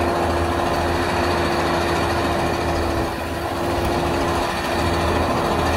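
A motorbike engine buzzes as it rides past.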